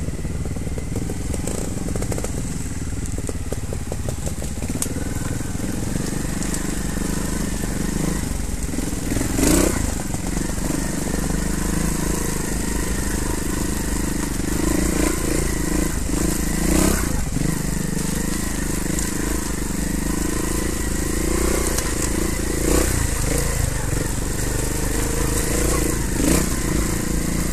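Tyres crunch and rattle over stones and dirt.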